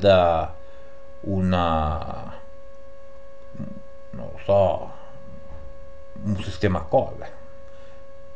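A middle-aged man speaks in short bursts with long pauses, close to a microphone.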